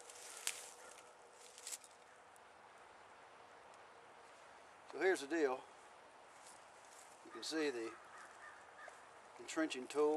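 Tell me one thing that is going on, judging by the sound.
A small campfire crackles softly.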